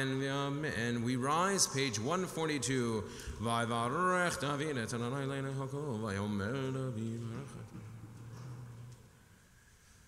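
A man chants into a microphone in a large echoing hall.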